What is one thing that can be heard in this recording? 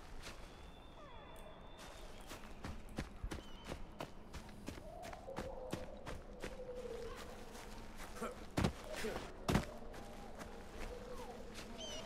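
Footsteps rustle through tall grass and undergrowth.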